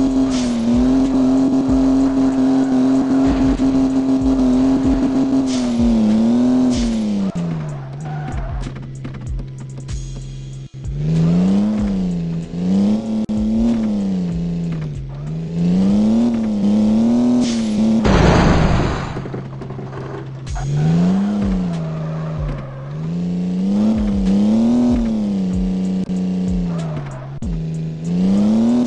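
A car engine revs up and down throughout.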